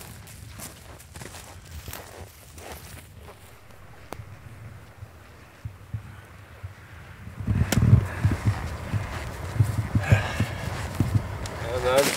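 A man walks through dry brush with crunching footsteps.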